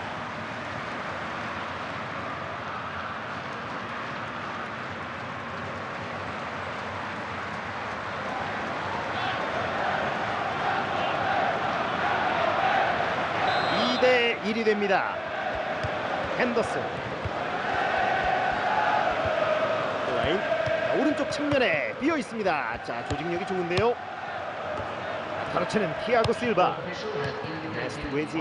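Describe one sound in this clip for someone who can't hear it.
A stadium crowd roars and chants steadily in a large open arena.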